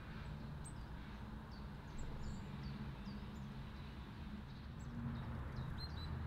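A small bird chirps in short, high notes nearby, outdoors.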